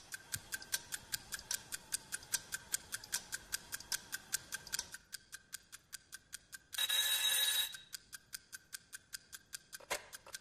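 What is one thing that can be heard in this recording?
A clock ticks quickly and steadily.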